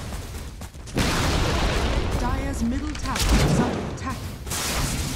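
A spell shoots off with a whooshing burst.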